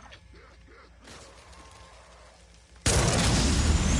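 A device hums and whirs as it powers up.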